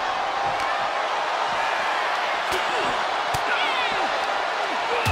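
A large arena crowd cheers and murmurs.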